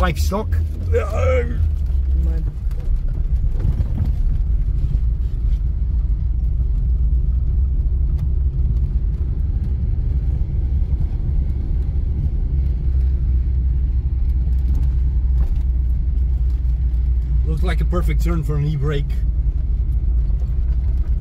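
A car engine rumbles steadily at low speed.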